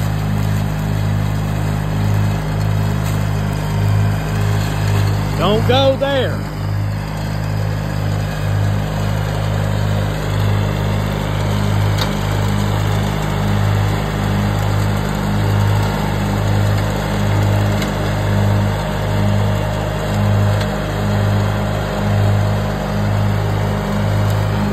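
A mower deck cuts through tall grass.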